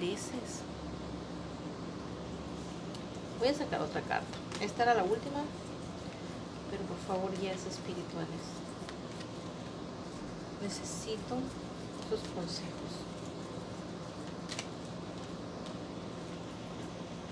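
Playing cards rustle and flick softly as they are handled.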